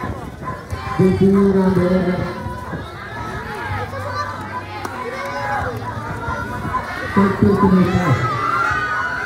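A young man shouts loudly nearby.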